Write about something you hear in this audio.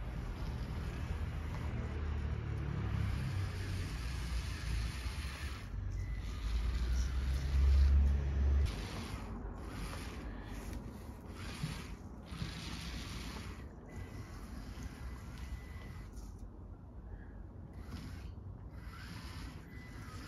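A small toy car's electric motors whir as it drives.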